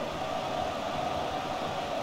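A football is kicked hard.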